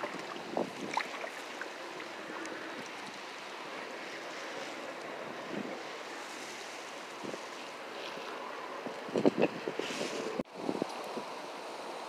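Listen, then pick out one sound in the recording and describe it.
Water laps and splashes against a small boat.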